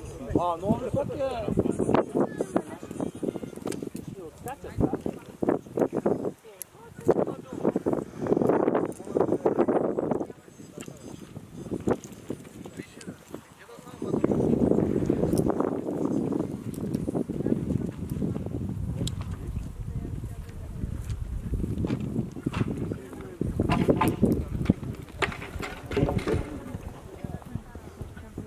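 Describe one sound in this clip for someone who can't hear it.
Horse hooves thud on grass at a canter.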